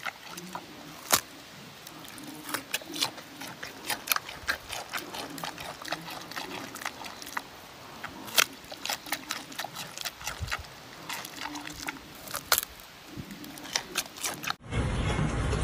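A panda crunches and chews noisily on food.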